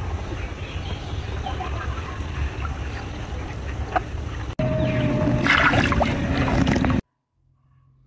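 Water splashes and swirls in a shallow pond.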